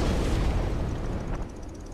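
A fireball bursts with a roaring whoosh.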